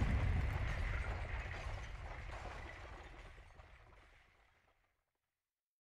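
A magic spell crackles and booms, then fades away.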